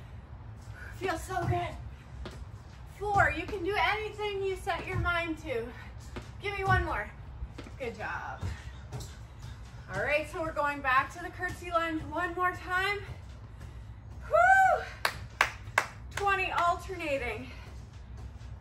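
A woman talks with animation.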